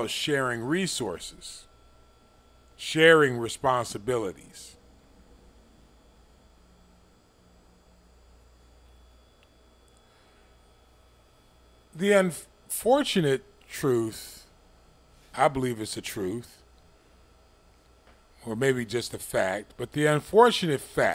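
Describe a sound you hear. An elderly man speaks calmly and closely into a microphone, with long pauses.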